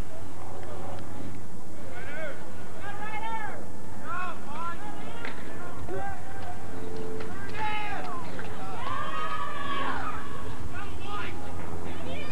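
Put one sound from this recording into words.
Children shout and call out across an open field, some way off.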